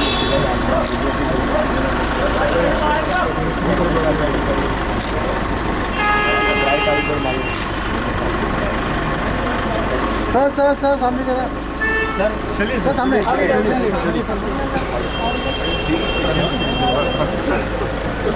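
Several men talk and chatter close by, outdoors.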